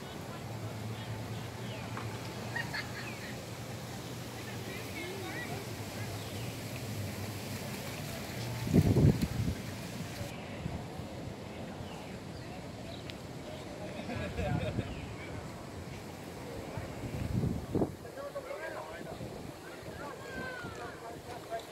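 Wind gusts outdoors and buffets loudly at times.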